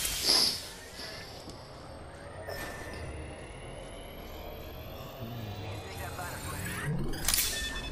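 A healing device whirs and hums with a rising electronic tone.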